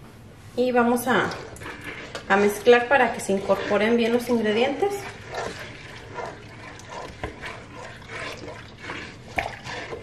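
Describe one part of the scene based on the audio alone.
A spoon stirs inside a pot, scraping softly.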